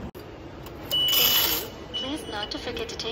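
A ticket machine beeps.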